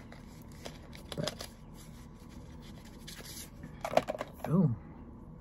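Plastic bubble wrap crinkles and rustles.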